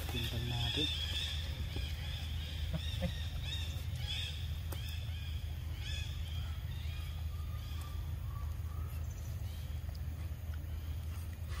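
Monkeys chew and smack on soft fruit close by.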